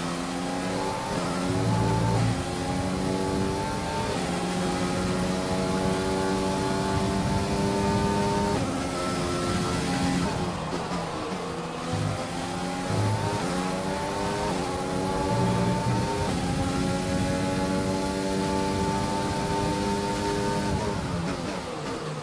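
A racing car engine screams at high pitch, rising through the gears and dropping as it brakes.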